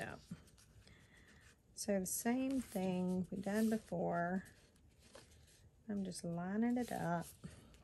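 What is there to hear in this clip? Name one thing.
Hands rub and press paper flat.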